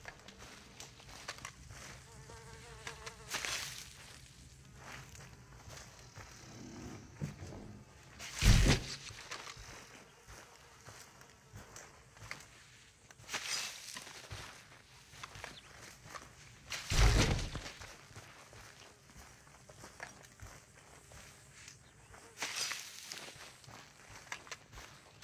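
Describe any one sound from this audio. Boots thud softly on a straw-covered wooden floor.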